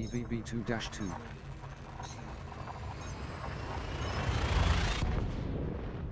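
A jump drive charges with a rising whoosh that ends in a sudden burst.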